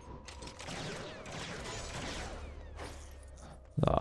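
A blaster fires a rapid burst of shots.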